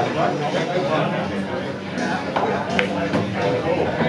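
A cue stick strikes a pool ball with a sharp click.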